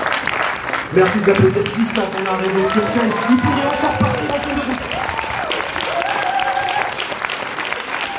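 A man cheers and shouts from the audience.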